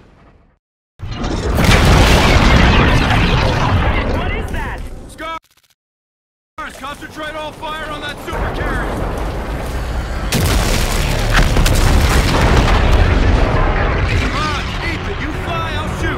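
A spacecraft engine roars loudly.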